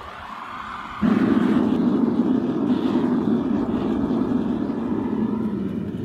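A gas burner roars steadily inside a furnace.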